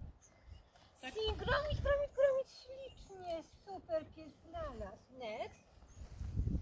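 A woman speaks to a dog in a high, excited voice nearby.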